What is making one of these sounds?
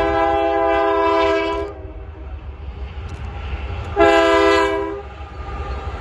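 Diesel freight locomotives rumble past close by.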